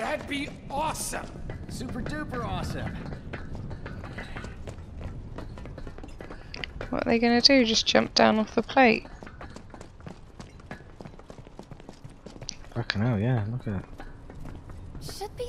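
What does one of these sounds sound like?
Footsteps clang quickly on metal grating.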